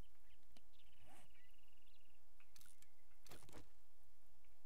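Soft menu clicks tap now and then.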